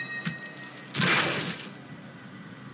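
A magical whoosh bursts and fades.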